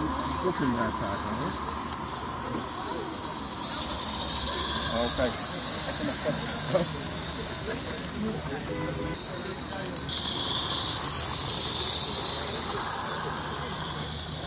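A small model train clatters along metal rails.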